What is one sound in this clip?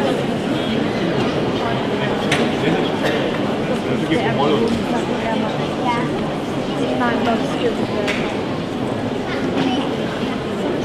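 Shoes tap on a stone block.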